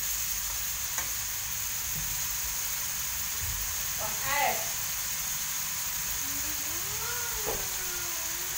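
A metal spatula scrapes and knocks against a pan.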